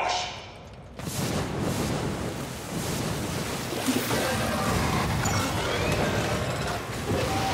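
Liquid gushes and splashes heavily.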